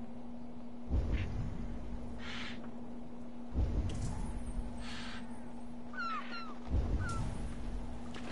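Water laps gently against a small wooden boat.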